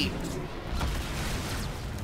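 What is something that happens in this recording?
Electricity crackles and zaps.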